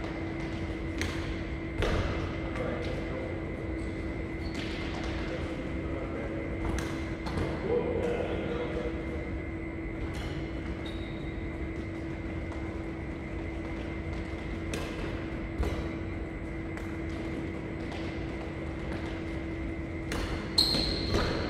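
Badminton rackets hit a shuttlecock back and forth in a large echoing hall.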